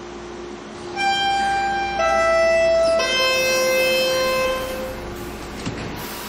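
A door chime plays a short run of falling tones.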